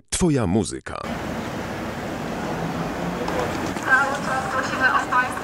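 Traffic hums steadily on a city street outdoors.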